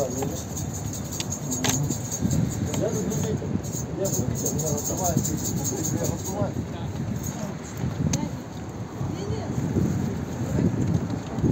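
Several men and women talk nearby, outdoors.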